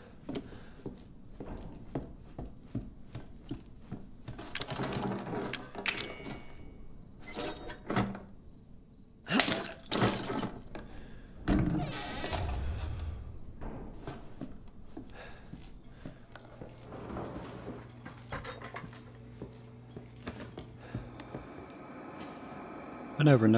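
Footsteps creak slowly across a wooden floor.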